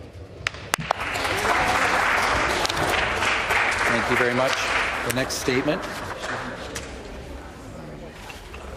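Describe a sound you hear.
A crowd applauds in a large echoing hall, then fades.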